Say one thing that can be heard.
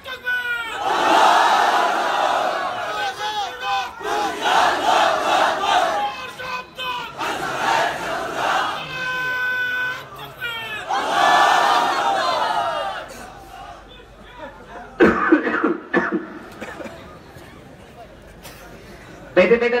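A young man chants and speaks with feeling into a microphone, heard through loudspeakers in an echoing hall.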